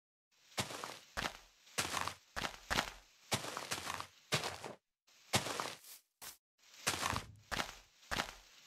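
Leaves rustle and crunch in quick bursts as they are broken.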